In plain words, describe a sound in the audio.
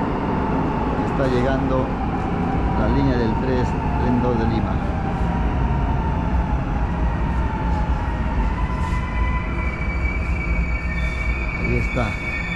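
A train rumbles in and slows to a stop.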